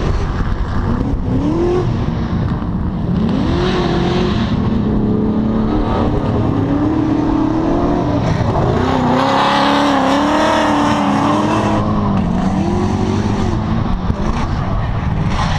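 Car engines roar and rev up and down in the distance.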